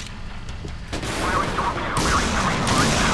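Missiles launch with a roaring whoosh.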